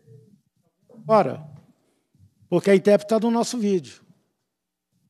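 A man speaks briefly into a microphone in a large room.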